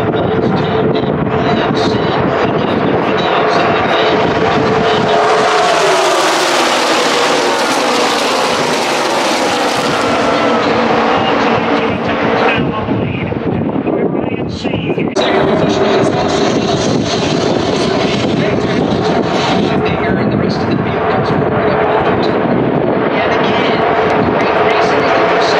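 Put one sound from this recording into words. A pack of race car engines roars loudly past, rising and falling in pitch.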